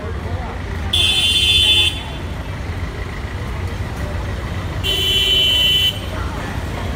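Vehicle horns blare loudly twice.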